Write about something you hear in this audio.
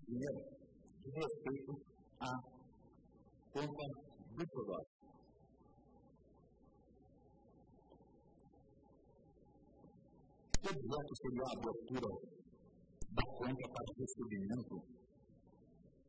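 A man speaks formally into a microphone, pausing at times.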